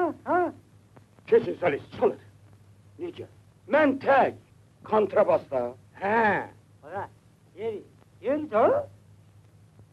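Men talk with animation.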